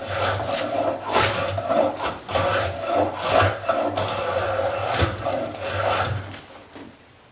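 A hand plane shaves along a wooden board in repeated strokes.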